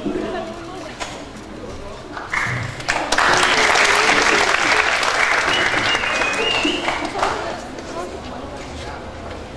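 An orchestra plays in a large echoing hall.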